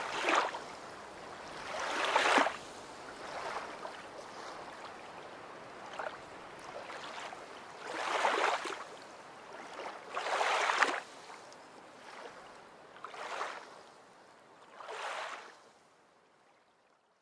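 A river flows past.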